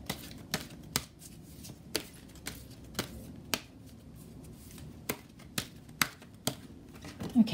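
Playing cards are shuffled by hand, with light snapping taps.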